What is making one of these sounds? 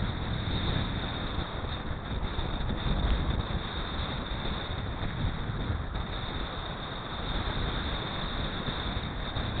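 Bicycle tyres hum on asphalt.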